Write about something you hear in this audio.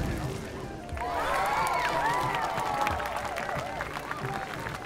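Children cheer and exclaim excitedly nearby.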